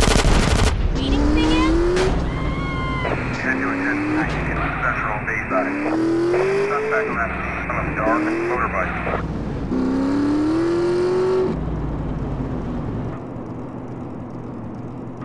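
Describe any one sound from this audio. A motorcycle engine revs up and down repeatedly as it speeds along.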